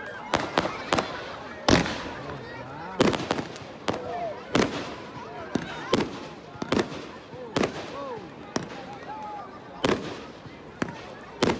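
Aerial fireworks burst with sharp bangs that echo in the open air.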